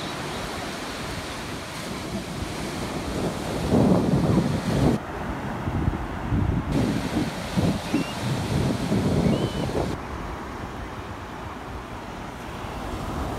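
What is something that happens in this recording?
Waves wash and break on a shore.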